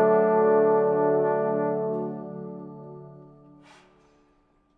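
A brass ensemble holds a final chord that rings out in a large echoing hall.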